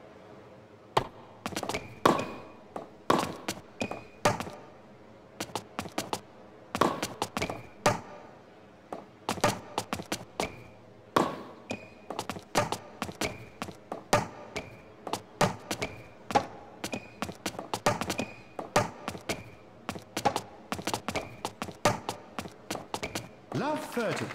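Tennis balls are struck sharply back and forth with rackets.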